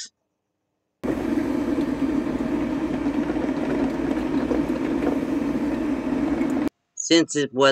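A coffee maker gurgles and hisses steadily as it brews.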